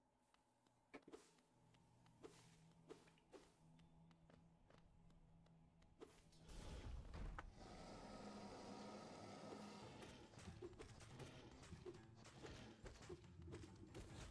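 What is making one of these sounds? A sword slashes with sharp swishes.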